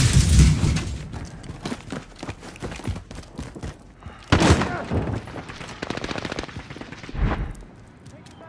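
Footsteps run quickly over hard ground.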